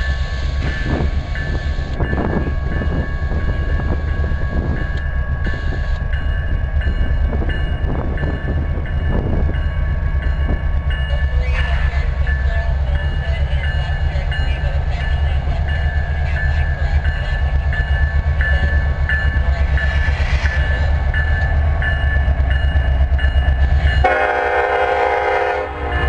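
Diesel locomotives rumble steadily as a train approaches.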